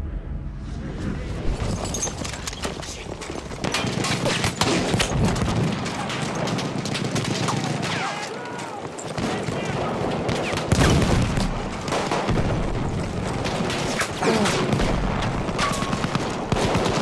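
A light machine gun fires rapid bursts close by.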